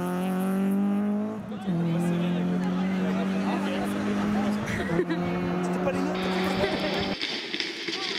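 A small rally hatchback revs hard through its gears.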